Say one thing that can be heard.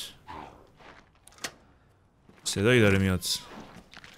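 A door lock clicks open.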